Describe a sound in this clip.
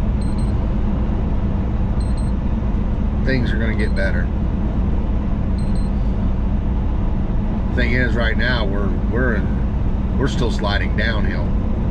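A vehicle engine rumbles steadily with road noise inside a cab.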